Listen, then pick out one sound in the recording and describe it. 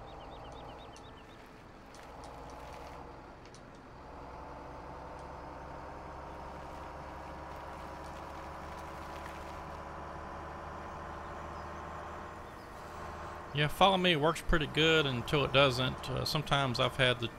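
A truck engine hums steadily as the truck drives along.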